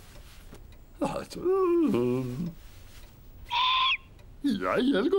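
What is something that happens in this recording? A man mumbles and grunts in a comic, rising and falling voice.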